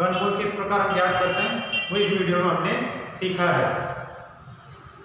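A young man speaks clearly and with animation close to a microphone.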